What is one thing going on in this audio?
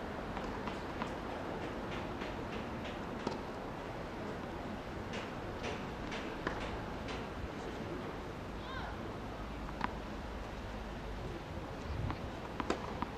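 Tennis shoes squeak and scuff on a hard court.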